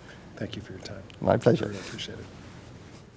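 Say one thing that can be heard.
A middle-aged man laughs close to a microphone.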